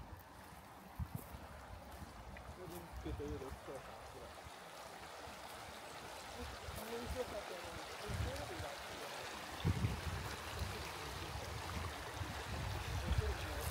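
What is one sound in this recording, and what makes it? A shallow stream trickles over stones nearby.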